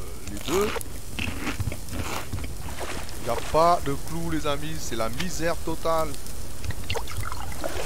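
Water laps gently against a shore.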